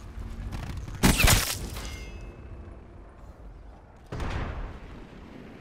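Gunshots blast in short bursts, echoing briefly.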